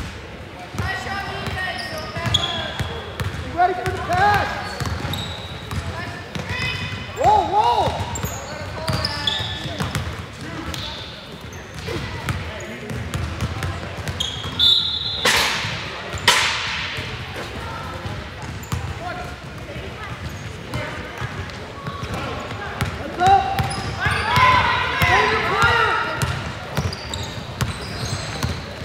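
Sneakers squeak sharply on a hardwood floor in an echoing gym.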